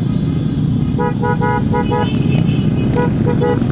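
Motorcycle horns beep in short bursts.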